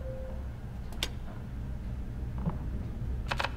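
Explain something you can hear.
A metal gear clicks into place.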